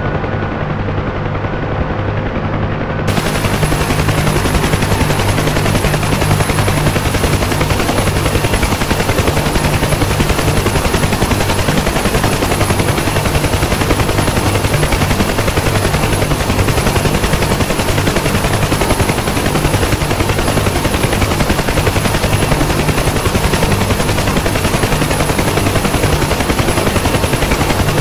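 Helicopter rotor blades thump steadily.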